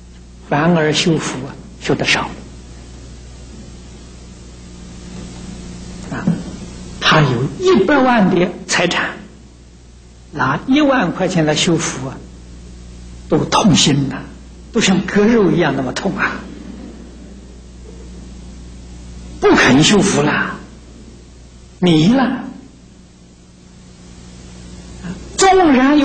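An elderly man speaks calmly and deliberately into a microphone, with pauses between phrases.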